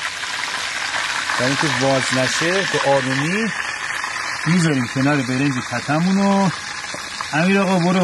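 Chicken sizzles and crackles in a hot frying pan.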